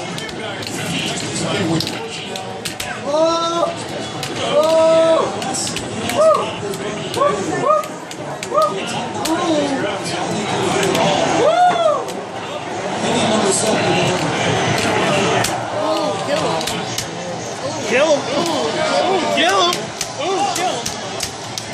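An arcade fighting game plays punching and kicking sound effects through a loudspeaker.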